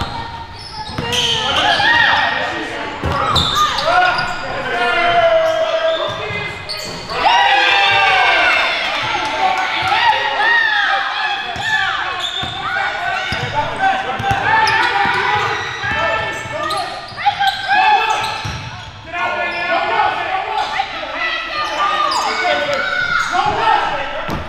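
Sneakers squeak sharply on a hard court, over and over.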